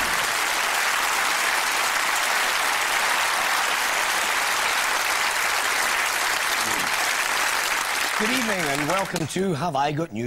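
A studio audience applauds and cheers loudly.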